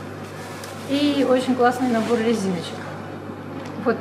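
Plastic packaging crinkles as a woman opens it.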